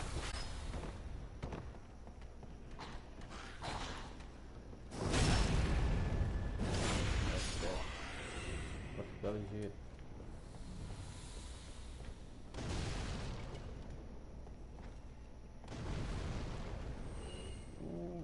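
Bare feet slap on a stone floor.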